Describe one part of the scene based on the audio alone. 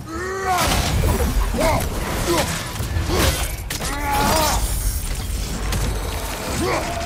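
Heavy blows land with loud thuds and crashes in a fierce fight.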